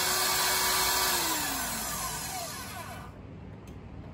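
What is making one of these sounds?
A magnetic drill motor whirs and spins down.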